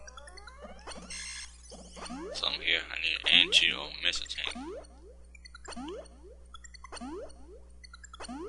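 Rising electronic chirps sound as a game character spins and jumps.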